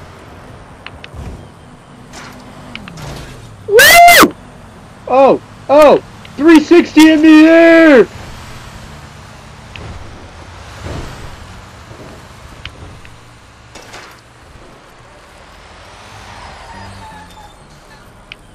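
Bicycle tyres roll along a paved road.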